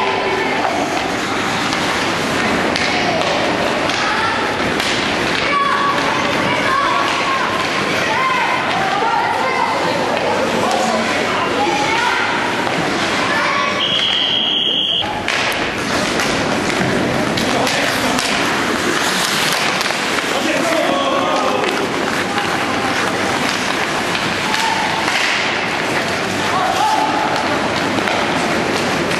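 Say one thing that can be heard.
A crowd of people shouts and cheers in a large echoing rink.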